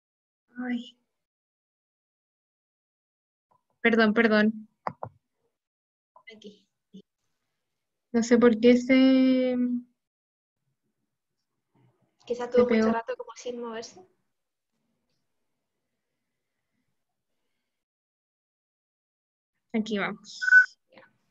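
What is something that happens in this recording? A young woman speaks calmly in short bursts over an online call.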